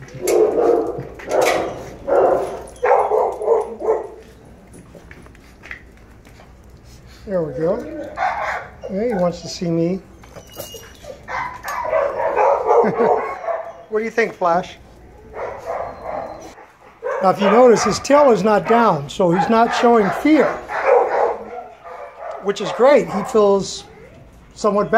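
A dog barks repeatedly close by.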